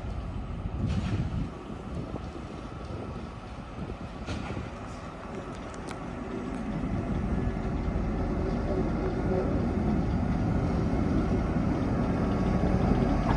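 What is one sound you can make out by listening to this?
A diesel locomotive rumbles as it approaches, growing louder.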